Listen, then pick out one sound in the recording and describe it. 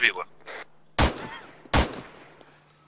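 A mortar fires with sharp, heavy thumps.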